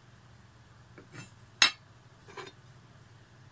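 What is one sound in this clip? Metal parts clink and knock against each other as they are handled.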